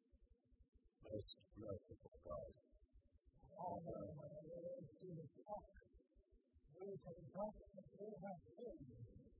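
A man reads aloud slowly through a microphone in a large echoing hall.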